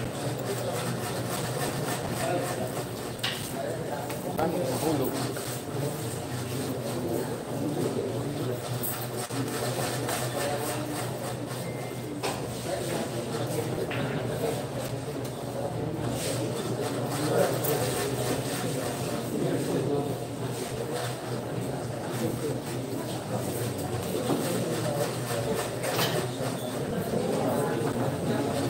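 A crowd of young people chatters nearby.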